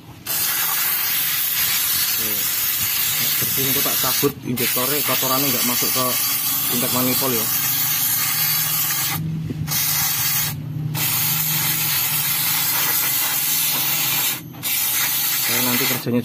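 An aerosol can sprays with a loud, steady hiss.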